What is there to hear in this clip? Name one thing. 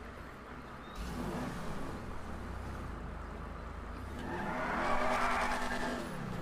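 A car engine hums as the car drives off.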